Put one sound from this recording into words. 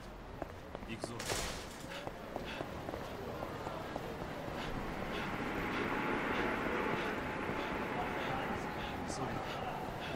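Footsteps run quickly on pavement.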